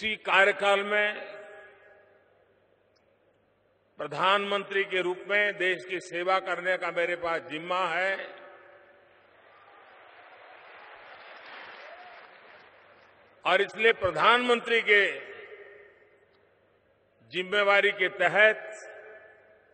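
An elderly man speaks forcefully into a microphone, echoing over loudspeakers.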